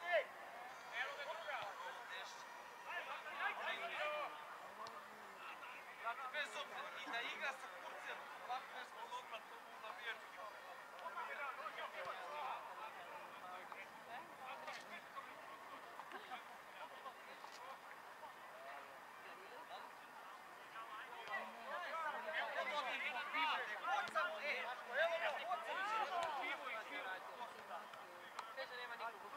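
Young men shout and call to each other in the distance outdoors.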